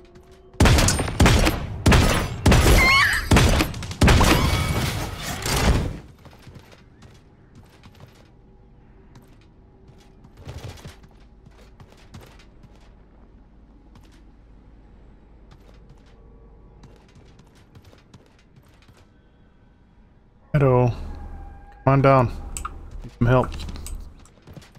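A man talks into a microphone with animation, close up.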